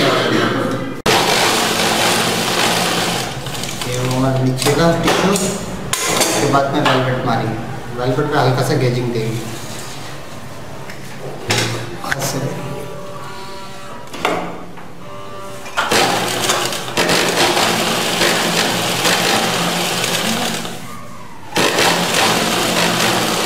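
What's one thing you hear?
A sewing machine stitches through fabric.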